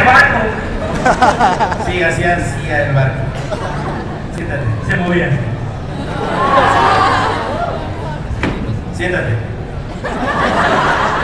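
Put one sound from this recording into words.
A film soundtrack plays loudly through loudspeakers in a large room.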